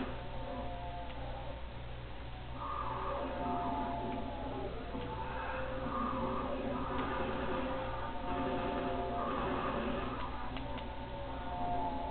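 Gunshots crack from a television speaker.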